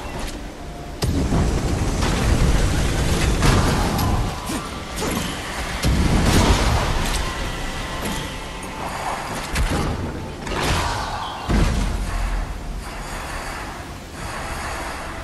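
Fiery blasts and magic whooshes burst out in a game fight.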